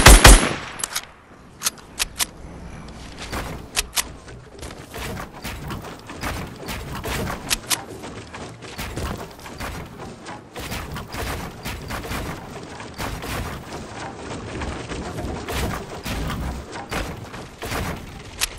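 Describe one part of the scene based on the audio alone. Wooden building pieces clack and thud into place in quick succession.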